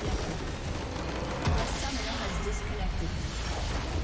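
A large crystal shatters with a booming explosion.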